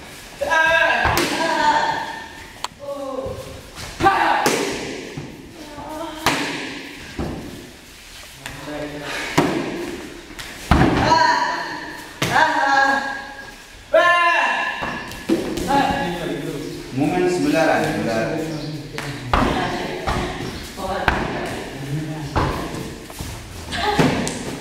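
Kicks thud against a padded training dummy.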